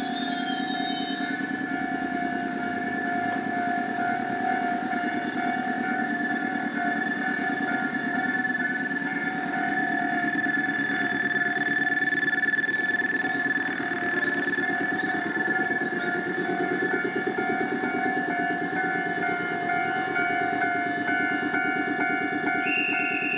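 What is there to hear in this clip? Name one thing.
A railway crossing bell rings steadily nearby.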